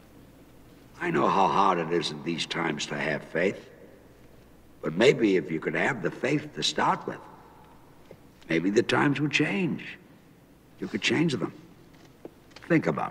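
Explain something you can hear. A man speaks loudly and firmly in an echoing room.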